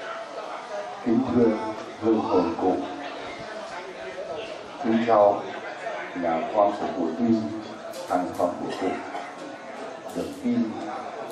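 A man speaks into a microphone, heard through a loudspeaker, calmly and with pauses.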